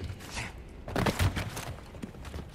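A body lands heavily on the ground with a thud.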